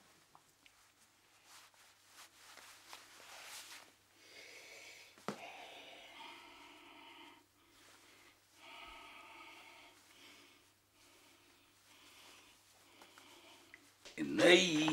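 Clothing rustles as a man pulls off a tie and shirt.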